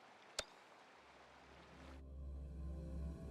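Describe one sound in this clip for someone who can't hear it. Low, soft music swells in slowly.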